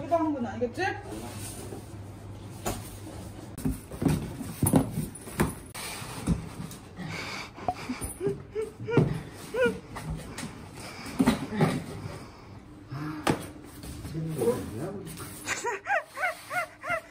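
Cardboard scrapes and thumps as a large box is pushed and handled.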